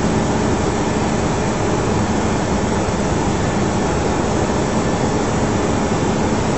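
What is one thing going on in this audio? Jet engines and rushing air roar steadily inside an airliner's cockpit.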